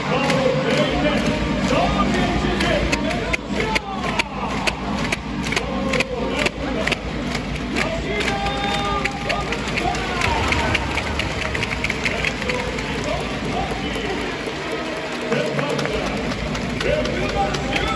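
A large crowd murmurs and cheers in a big echoing stadium.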